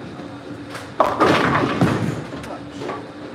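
Bowling pins crash and clatter as a ball strikes them.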